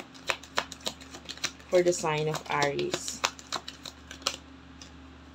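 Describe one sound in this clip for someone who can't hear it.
Playing cards are shuffled with quick soft flicks and taps.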